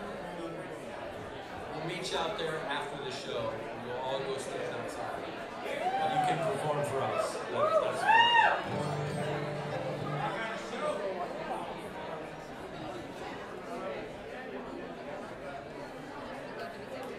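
A banjo picks quick rolling notes.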